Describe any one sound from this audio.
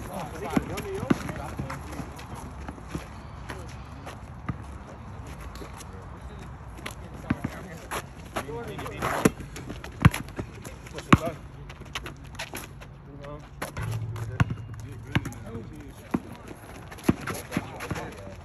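Young men call out to each other at a distance during a game.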